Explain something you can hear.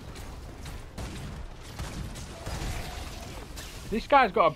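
A large stone creature stomps with heavy, low thuds.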